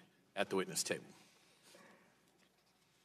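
An elderly man speaks briefly and calmly into a microphone.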